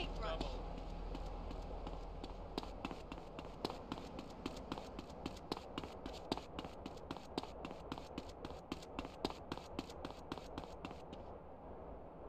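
Footsteps run quickly over dirt and gravel.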